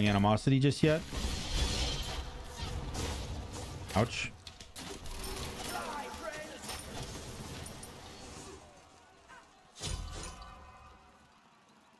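Magic blasts and whooshes burst in a game.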